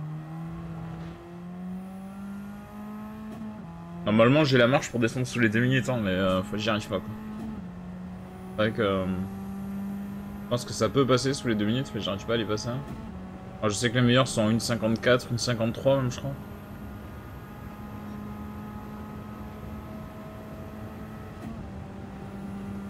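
A racing car engine revs high, rising in pitch and dropping at each gear change.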